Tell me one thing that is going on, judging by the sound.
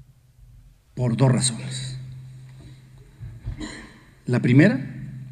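A middle-aged man speaks emphatically through a microphone in a large echoing hall.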